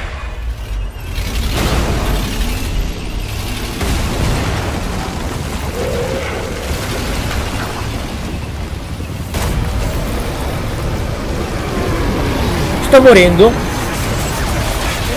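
A deep roar of fire and explosions rumbles steadily.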